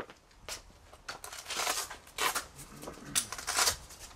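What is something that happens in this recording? A vest's fabric straps rustle and tear loose as a man handles it.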